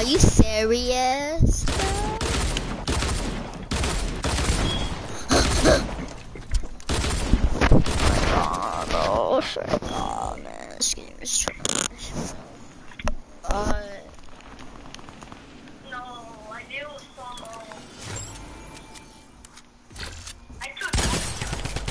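Video game building sounds clatter and thud in quick bursts.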